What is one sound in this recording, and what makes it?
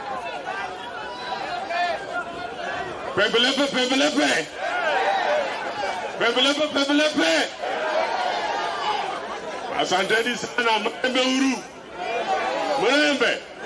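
A crowd of people murmurs and calls out around the speaker.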